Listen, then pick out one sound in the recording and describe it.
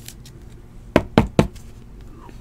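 A stiff plastic card holder clicks and taps as it is handled.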